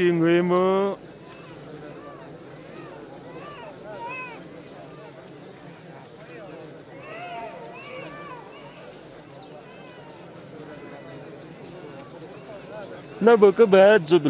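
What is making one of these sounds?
People murmur softly in the background.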